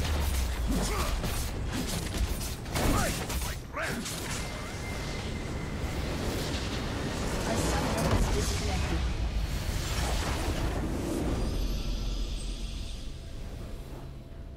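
Game spells crash and whoosh loudly during a fight.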